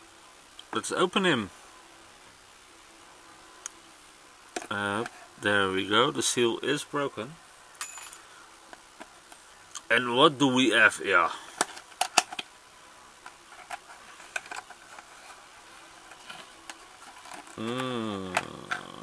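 Cardboard scrapes and taps softly as a box is handled and opened.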